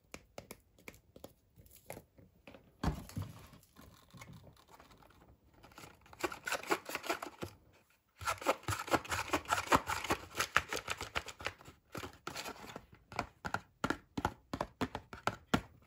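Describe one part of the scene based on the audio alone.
A paper bag rustles and crinkles as a hand reaches inside.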